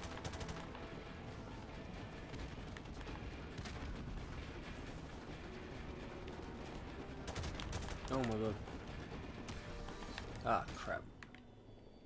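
A low rumble of distant battle rolls on steadily.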